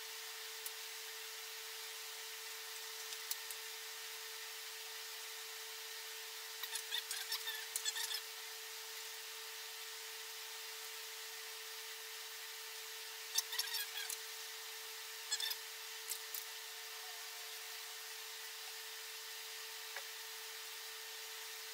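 A screwdriver clicks as screws are turned into metal.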